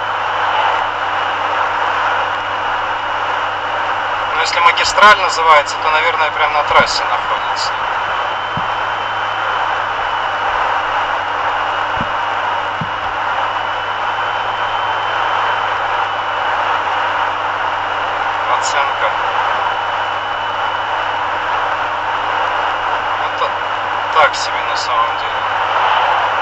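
A car engine hums steadily as tyres roll on a road.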